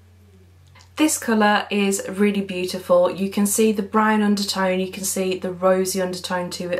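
A young woman talks up close, with animation.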